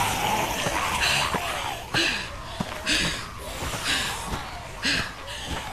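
A woman pants heavily and breathlessly.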